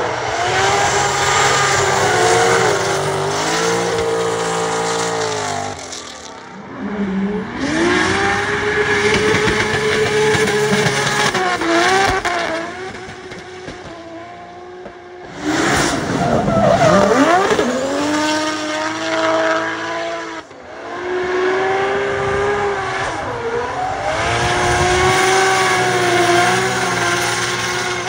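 A car engine revs hard and roars as it drifts.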